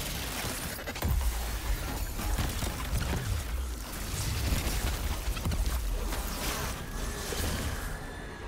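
Gunfire and explosions boom in a video game.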